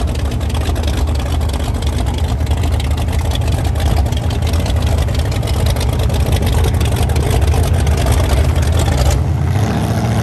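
A racing boat engine roars loudly close by.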